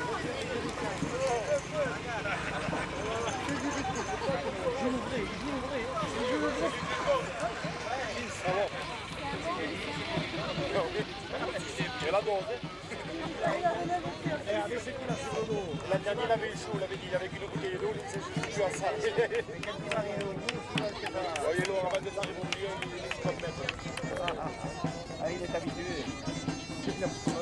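A crowd of men and women chatters outdoors all around.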